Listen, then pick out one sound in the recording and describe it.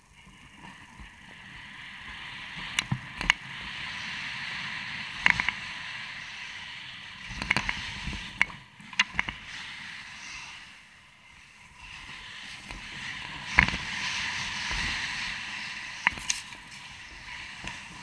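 Mountain bike tyres roll fast over a dirt trail.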